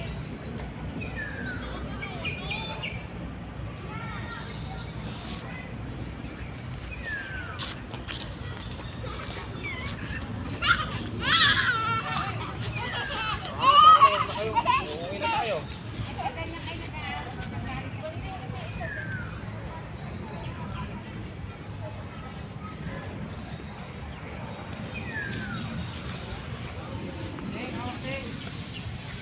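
A middle-aged woman talks close by, chatting casually.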